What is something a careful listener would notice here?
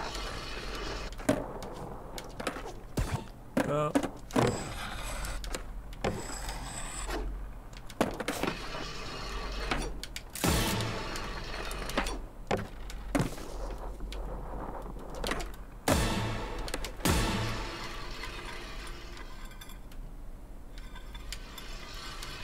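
Skateboard wheels roll and grind along rails.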